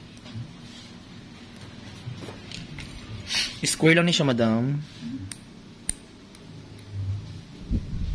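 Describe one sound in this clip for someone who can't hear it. Nail clippers click as they snip a toenail.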